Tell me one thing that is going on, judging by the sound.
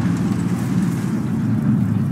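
A tank engine rumbles low and steadily nearby.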